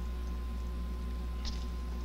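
Water pours from a kettle.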